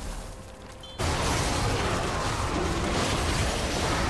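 Magic blasts and impacts crash loudly in a fantasy battle.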